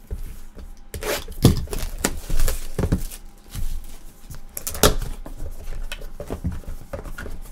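Cardboard boxes knock and slide against each other.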